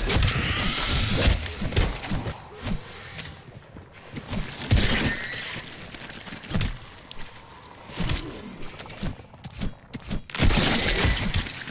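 A man talks into a microphone with animation.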